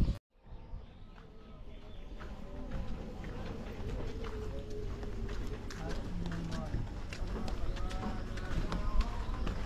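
Footsteps scuff along a dirt path.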